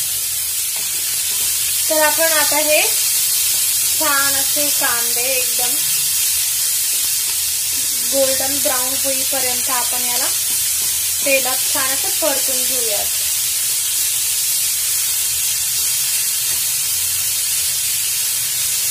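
A wooden spatula scrapes and stirs onions against a pan.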